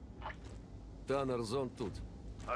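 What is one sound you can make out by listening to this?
A man speaks briefly over a radio.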